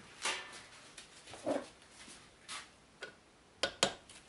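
Metal tools clink and scrape against a wheel hub.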